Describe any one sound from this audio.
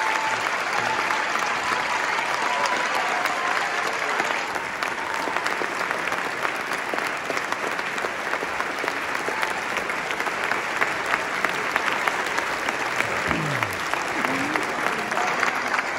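A large audience applauds loudly in an echoing concert hall.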